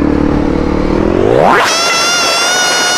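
A motorcycle engine revs up sharply.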